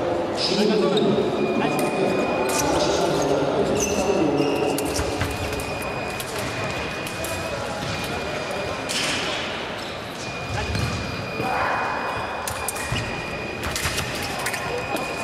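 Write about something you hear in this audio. Voices of men and women murmur and call out across a large echoing hall.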